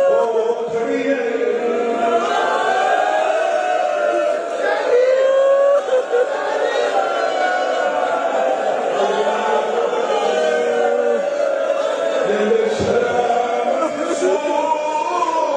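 A man chants loudly through a microphone in a melodic voice.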